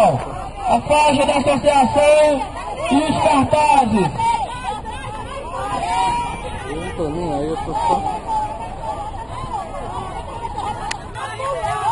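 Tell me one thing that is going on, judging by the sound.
A man speaks loudly through a microphone and loudspeaker.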